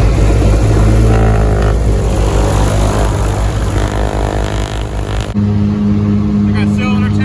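A small propeller plane's engine drones loudly and steadily up close.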